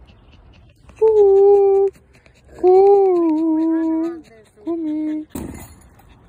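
A dog whines loudly and close by in drawn-out, wavering cries.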